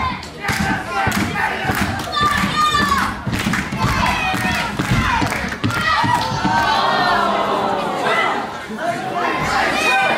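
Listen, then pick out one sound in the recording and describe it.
Bodies thud on a wrestling mat.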